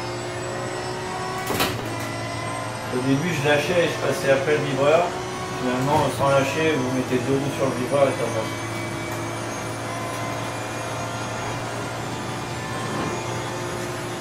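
A racing car engine hums steadily at speed.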